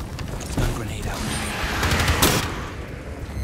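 A rifle fires rapid shots close by.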